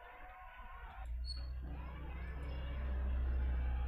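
A band plays loud music with a heavy, booming bass.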